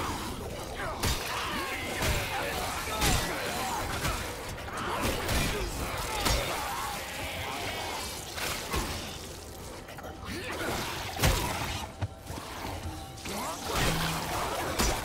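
Heavy blows thud and squelch against flesh.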